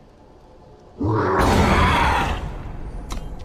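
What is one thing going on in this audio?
A heavy game impact effect booms and rumbles.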